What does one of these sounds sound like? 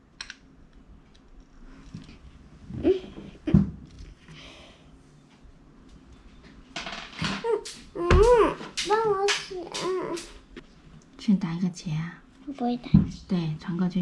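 Plastic toy bricks click and clatter on a table.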